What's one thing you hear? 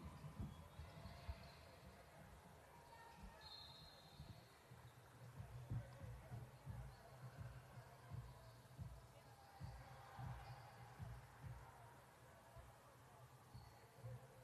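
Sneakers squeak sharply on the gym floor.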